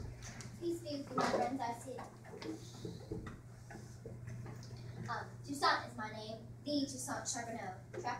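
A young girl speaks up clearly in a play.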